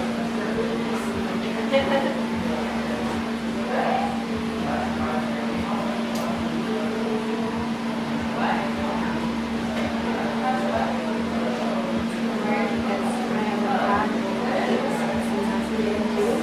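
Scissors snip hair.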